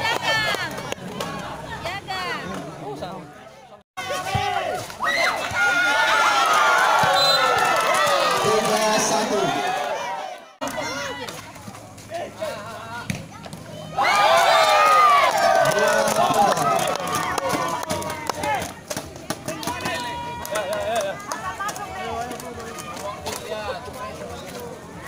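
A crowd of young spectators shouts and cheers loudly outdoors.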